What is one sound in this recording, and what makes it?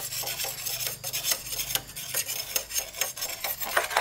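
A machete chops into bamboo with sharp knocks.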